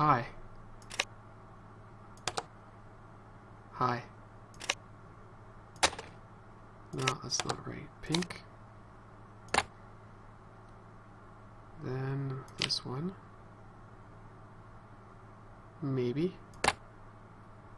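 Short electronic clicks sound now and then as game pieces are placed.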